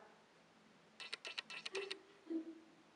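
A parrot makes rapid clicking sounds.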